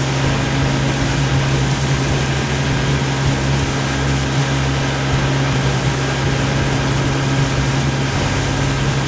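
Water laps against the bow of a moving boat.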